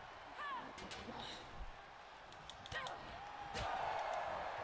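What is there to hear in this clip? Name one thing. Blows land with sharp thuds in a wrestling game.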